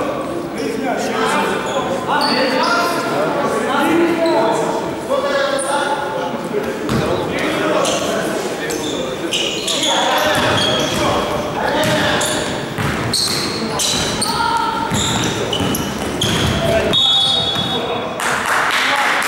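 Young men shout and call out to each other.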